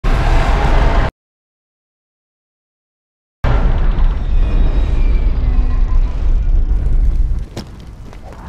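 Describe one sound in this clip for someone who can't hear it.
A huge mechanical beast roars with a deep rumble.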